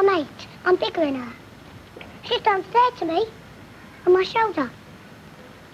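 Children shout and call out excitedly.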